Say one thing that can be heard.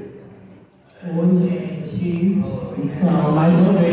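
A woman speaks through a microphone over a loudspeaker.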